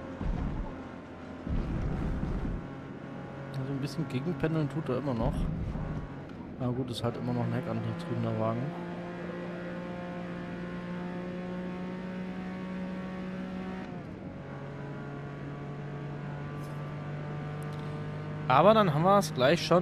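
A car engine drones steadily at high revs, dropping in pitch briefly as the gear changes.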